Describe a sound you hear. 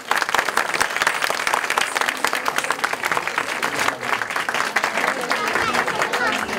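A crowd claps along in quick rhythm in an echoing room.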